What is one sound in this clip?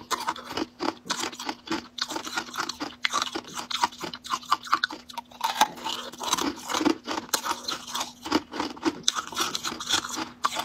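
A young woman chews soft jelly close to a microphone, with wet squelching sounds.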